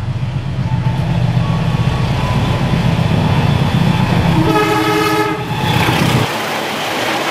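A diesel locomotive engine rumbles loudly as it approaches.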